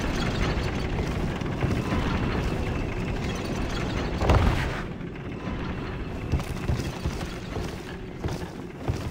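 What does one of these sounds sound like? Footsteps thud on creaking wooden planks.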